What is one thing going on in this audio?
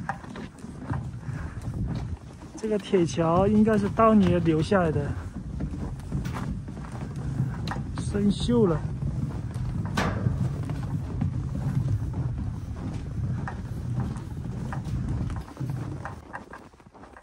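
Footsteps crunch on snow and thud on a metal bridge.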